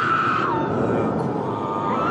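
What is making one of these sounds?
A man screams loudly.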